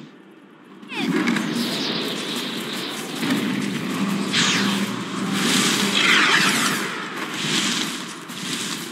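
Magic blasts and clashing hits crackle in a busy battle.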